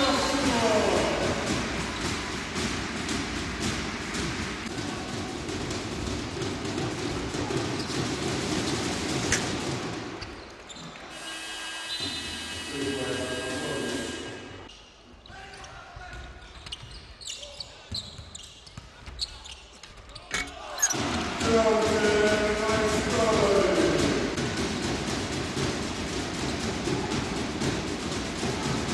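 A large crowd cheers and roars in a big echoing hall.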